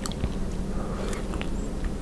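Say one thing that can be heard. Someone bites into a soft marshmallow close to a microphone.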